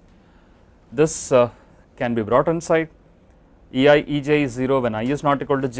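A man lectures calmly through a clip-on microphone.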